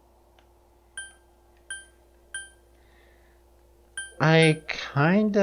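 Short electronic beeps chime as a menu selection moves.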